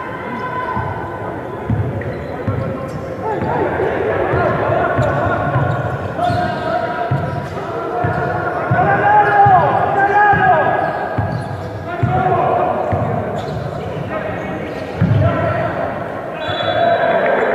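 Players' sneakers squeak on the court.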